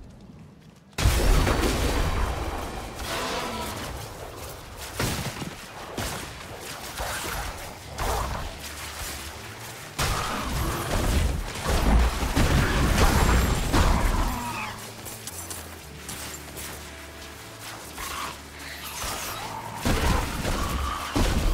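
Lightning spells crackle and zap in bursts.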